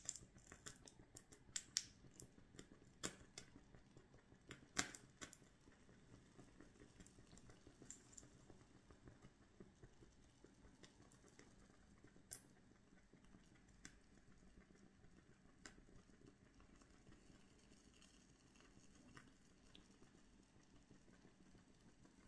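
A wooden stick crackles and pops in a flame.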